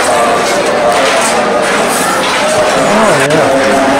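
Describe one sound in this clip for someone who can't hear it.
Steel plates clatter and clink together.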